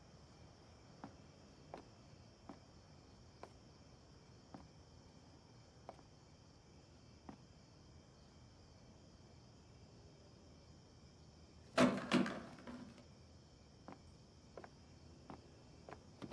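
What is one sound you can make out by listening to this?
Footsteps tread slowly on hard ground outdoors.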